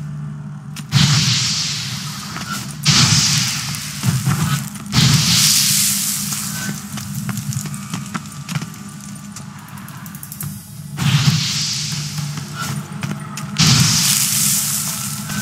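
A fire roars and flares up in loud whooshes.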